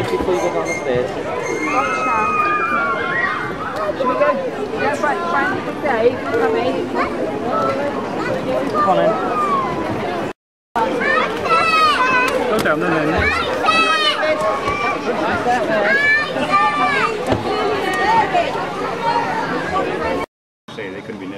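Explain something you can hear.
A crowd of men, women and children chatters outdoors.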